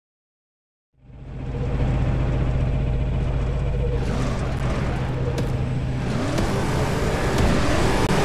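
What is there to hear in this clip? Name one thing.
Racing car engines roar and rev.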